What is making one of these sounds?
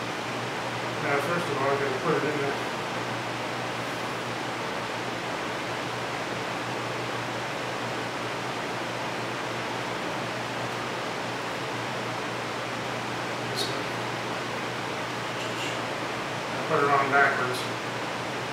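A middle-aged man speaks briefly and calmly nearby.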